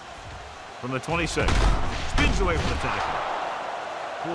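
Football players collide in a tackle with a heavy thud.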